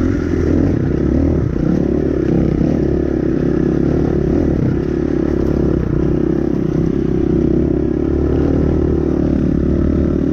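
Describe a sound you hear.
A dirt bike engine drones loudly close by.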